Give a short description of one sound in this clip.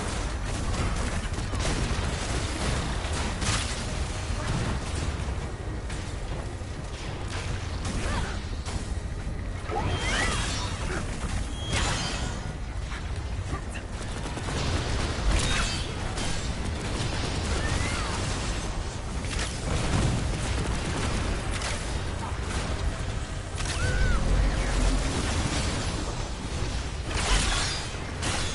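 Blasts and energy bursts crackle and boom in quick succession.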